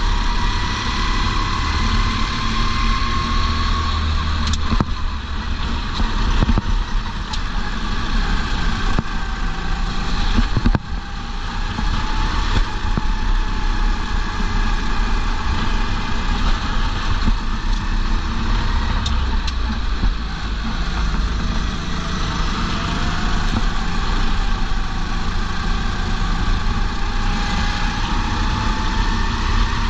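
A racing kart engine screams at full throttle, rising and falling in pitch through the corners.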